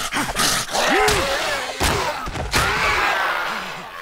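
A wooden club thuds against a body.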